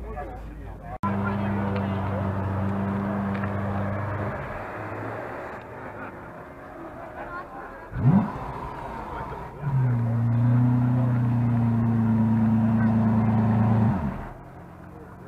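A sports car engine rumbles deeply as the car rolls slowly past.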